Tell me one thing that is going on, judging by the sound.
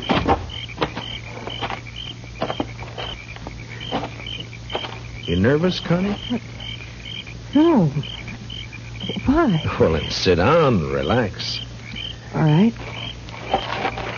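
A log fire crackles and pops steadily close by.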